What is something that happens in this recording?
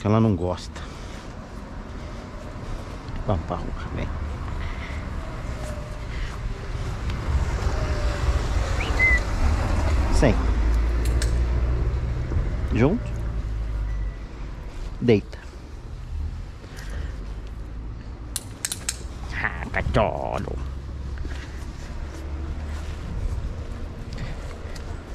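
Footsteps scuff along a paved path.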